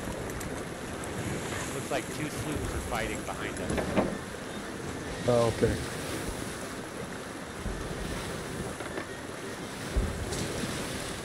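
Waves wash and splash steadily against a wooden ship.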